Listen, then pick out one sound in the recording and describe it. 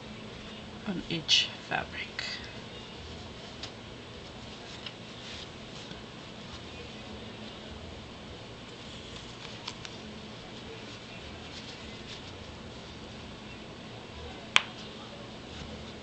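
Fabric rustles and crinkles as hands handle it.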